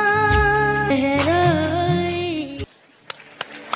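A young male singer sings into a microphone.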